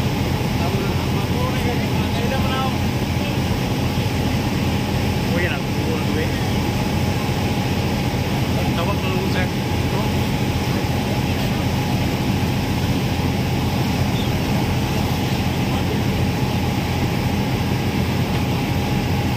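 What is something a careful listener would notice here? Small waves lap against the shore.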